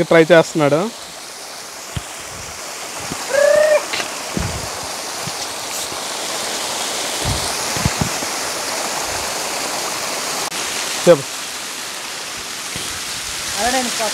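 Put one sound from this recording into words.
Water splashes and trickles over rocks.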